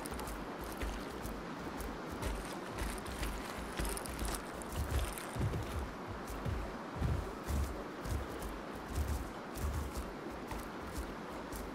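Heavy footsteps thud steadily on the ground as a large creature runs.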